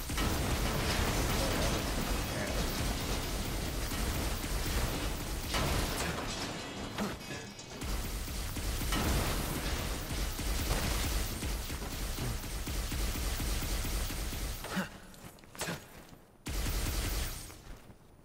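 Magical blasts crackle and burst loudly.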